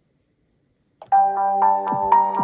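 Eerie music plays through a tablet speaker.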